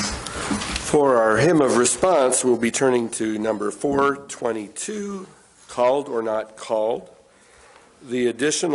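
An older man reads aloud steadily into a microphone.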